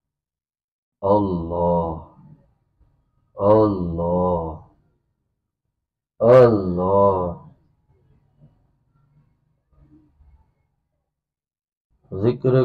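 A man chants slowly and steadily into a microphone in long drawn-out phrases with pauses between them.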